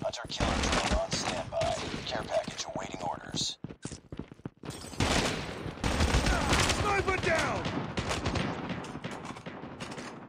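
A rifle clicks and clacks as it is reloaded.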